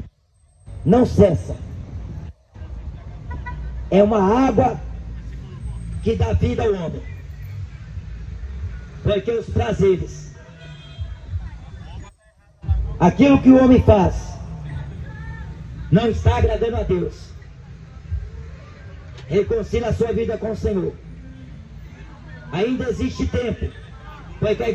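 A young man speaks forcefully into a microphone through a loudspeaker outdoors, in short declaiming phrases.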